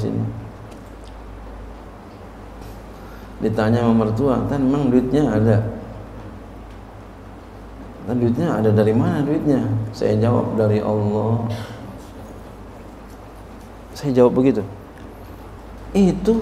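A middle-aged man speaks slowly and deliberately into a microphone, in bursts with pauses between.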